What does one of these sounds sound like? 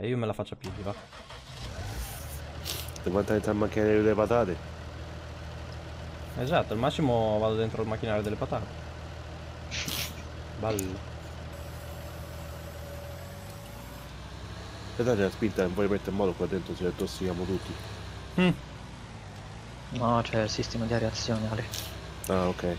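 A tractor engine idles with a low, steady hum.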